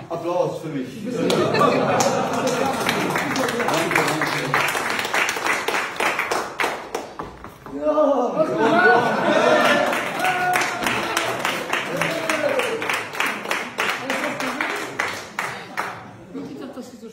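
A group of people clap their hands.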